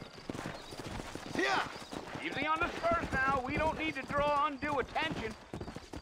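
A horse's hooves clop on dirt.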